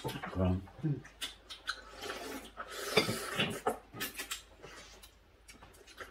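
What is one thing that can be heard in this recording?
A man chews and slurps food noisily, close by.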